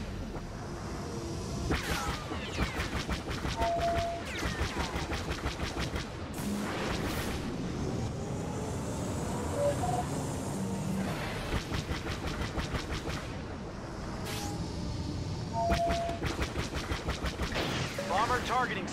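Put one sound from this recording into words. A fighter craft's engines roar steadily.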